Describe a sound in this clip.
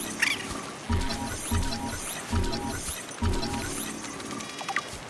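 A handheld scanner hums and beeps.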